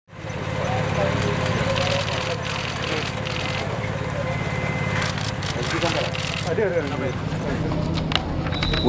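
A crowd of men chatter and call out close by, outdoors.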